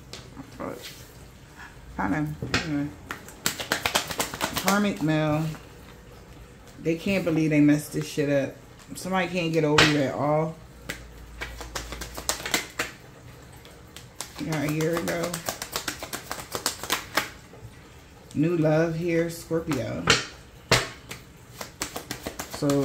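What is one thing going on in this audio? Playing cards riffle and flick as they are shuffled by hand.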